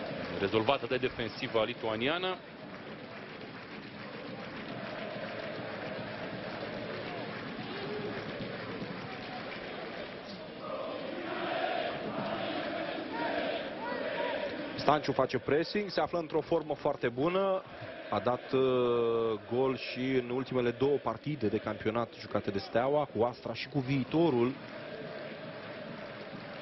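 A stadium crowd murmurs and chants steadily in the distance.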